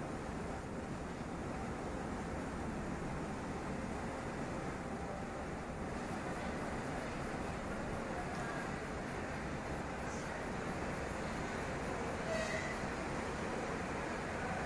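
A stationary train's machinery hums low and steady.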